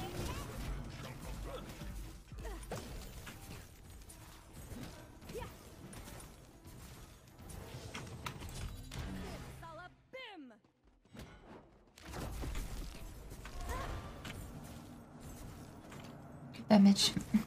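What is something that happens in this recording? A young woman talks animatedly into a microphone.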